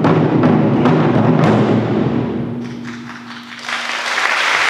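Large drums are struck hard and fast, booming and ringing out in a large hall.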